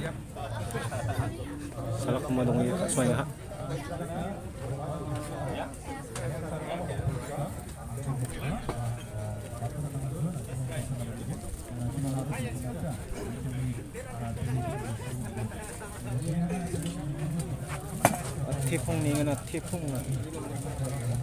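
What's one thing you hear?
Several men talk nearby in a crowd outdoors.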